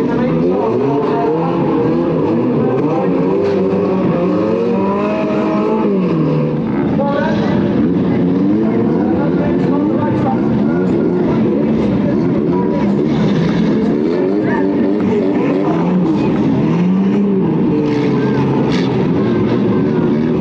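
Car engines rev and roar.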